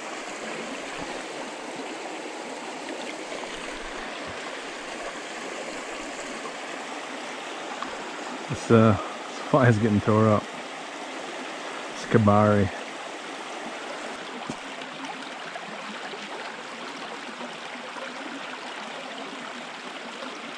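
A shallow stream trickles and babbles over rocks.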